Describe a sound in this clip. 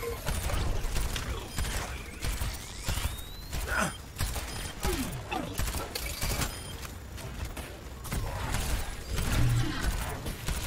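A gun fires rapid bursts of shots.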